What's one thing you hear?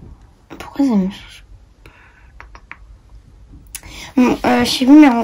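A young girl speaks close by with animation.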